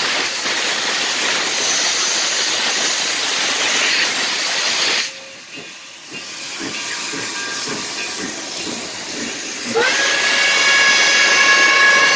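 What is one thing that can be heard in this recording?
Heavy train wheels rumble and clank along the rails.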